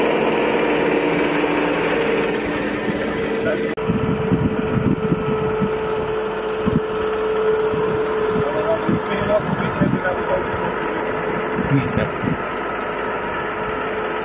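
A tractor engine hums steadily close by.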